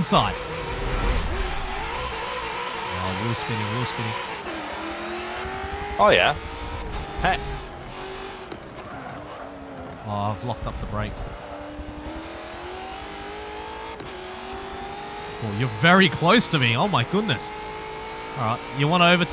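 A racing car engine roars, its pitch rising and falling as the gears shift.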